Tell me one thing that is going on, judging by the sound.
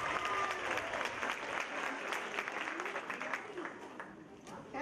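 An audience claps in a large hall.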